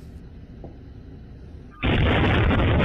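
A helicopter's rotor whirs.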